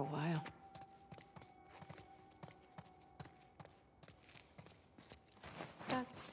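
Footsteps tread on a concrete floor.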